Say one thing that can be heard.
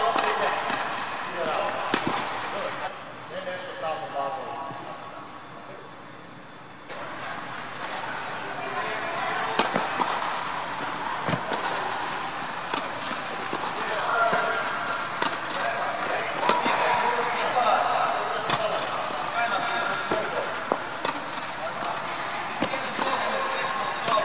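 A tennis racket strikes a ball with a sharp pop, again and again.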